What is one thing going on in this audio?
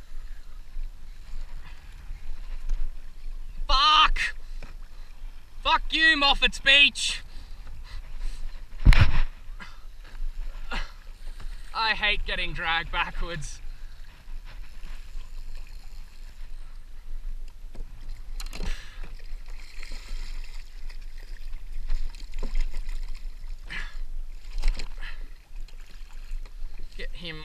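Small waves lap and slosh against a kayak hull.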